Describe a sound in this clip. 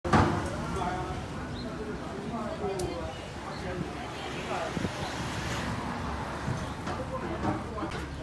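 Traffic hums along a busy street outdoors.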